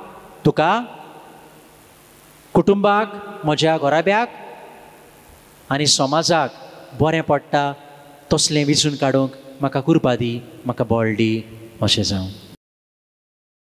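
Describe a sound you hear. A young man preaches with animation through a microphone in an echoing hall.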